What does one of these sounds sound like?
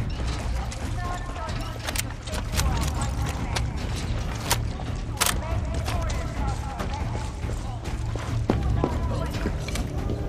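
Footsteps crunch steadily on dirt and gravel.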